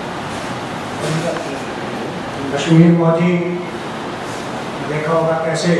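A man speaks into a microphone, heard through a loudspeaker in an echoing room.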